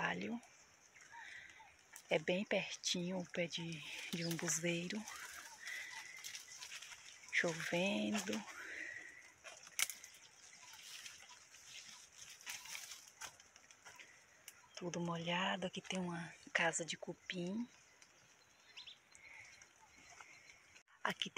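Leaves and twigs rustle and snap underfoot as someone walks through dense brush.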